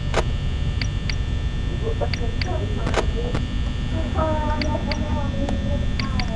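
An electronic monitor flips up and down with a short rattling whoosh.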